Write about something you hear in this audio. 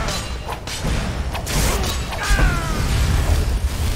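A magic blast whooshes and bursts.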